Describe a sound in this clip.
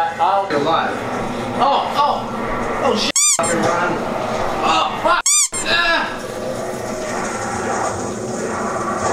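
Video game gunfire rattles from a television speaker.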